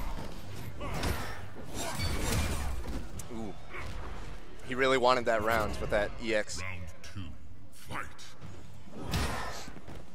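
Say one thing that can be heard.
An energy blast whooshes.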